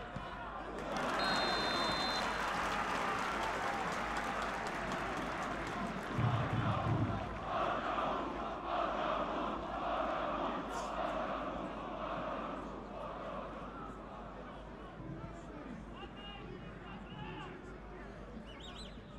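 A large crowd roars in an open stadium, swelling suddenly and then slowly fading.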